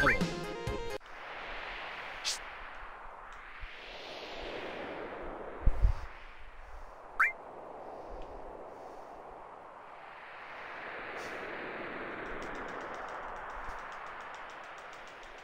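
Wind howls in long rising and falling gusts.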